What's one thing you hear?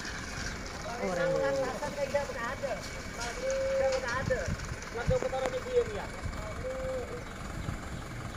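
Men talk loudly outdoors.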